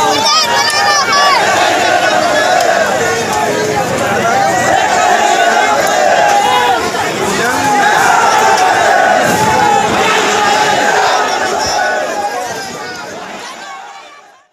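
A large crowd of men chants and shouts slogans loudly outdoors.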